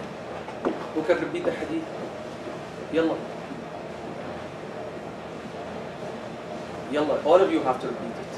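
A man speaks nearby in short bursts, in a calm voice.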